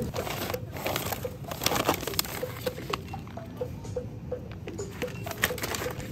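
A snack bag rustles and crackles.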